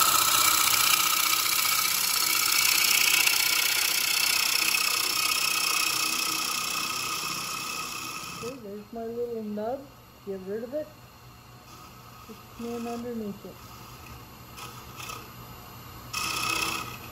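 A wood lathe whirs steadily.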